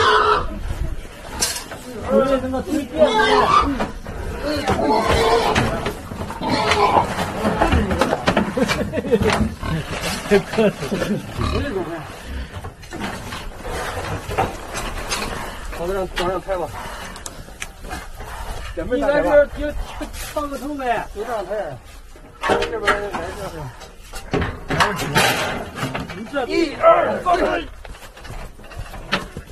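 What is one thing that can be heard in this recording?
Men and women talk and call out to each other close by.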